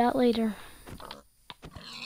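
A pig squeals when struck.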